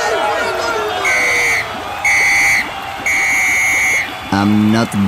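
A referee's whistle blows three sharp blasts.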